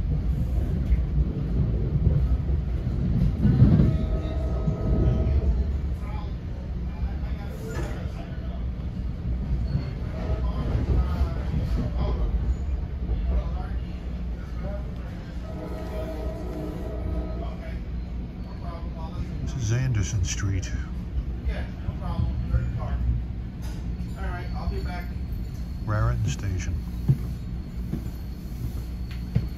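A train rumbles and rattles along the tracks, heard from inside a carriage.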